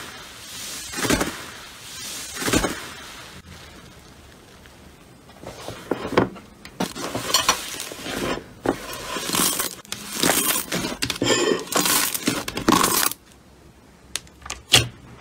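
Hands press and squish thick slime, making wet pops and crackles.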